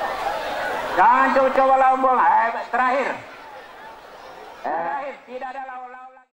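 Men in a crowd shout and cheer.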